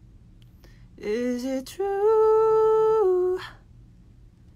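A young man sings a long, held note close up.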